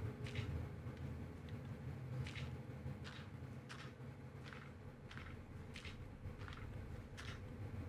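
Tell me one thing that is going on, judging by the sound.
Footsteps crunch on rough ground at a steady pace.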